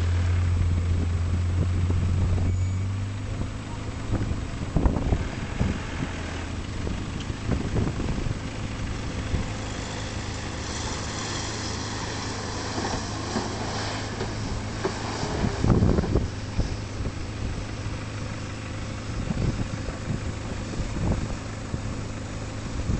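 A vehicle engine revs and labours as it climbs through soft sand.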